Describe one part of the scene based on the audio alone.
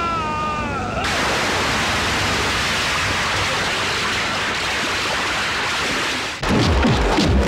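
Water splashes and churns heavily.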